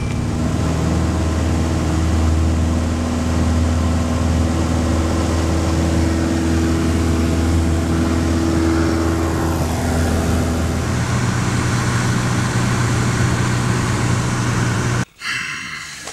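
A small propeller plane's engine drones loudly.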